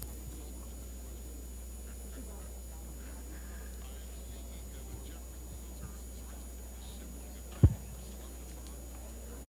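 An audience murmurs quietly in a large hall.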